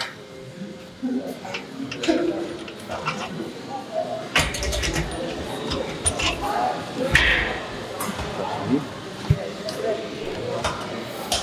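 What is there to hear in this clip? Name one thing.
A man talks with animation close by, in a large echoing room.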